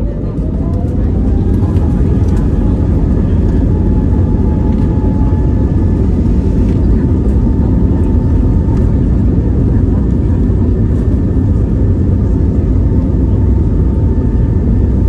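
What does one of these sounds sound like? Tyres rumble over the runway.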